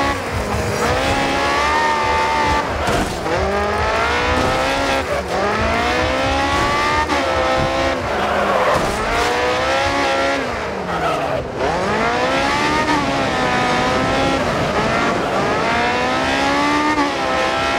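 A racing car engine screams, rising and falling in pitch as it shifts gears.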